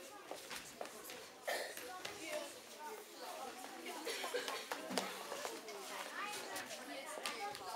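Footsteps thud and shuffle on a wooden floor.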